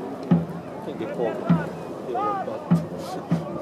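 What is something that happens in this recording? A man shouts commands from a distance.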